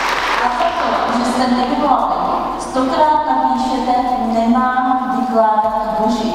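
A woman speaks through a microphone and loudspeaker in a large echoing hall.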